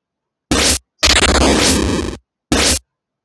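A monster lets out a deep, rough roar.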